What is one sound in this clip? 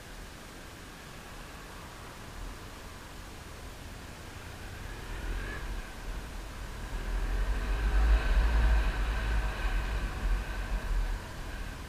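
A motorcycle engine hums steadily and grows louder as the bike speeds up.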